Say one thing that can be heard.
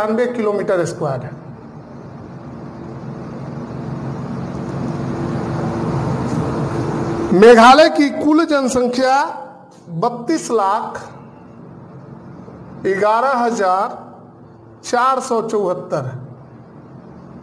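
A man speaks in a steady, explaining voice, close by.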